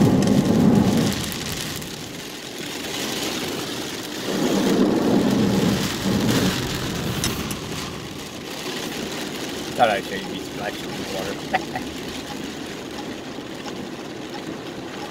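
Car tyres hiss on a wet road.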